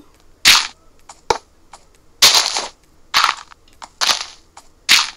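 Gritty crunches of digging come in short, quick bursts.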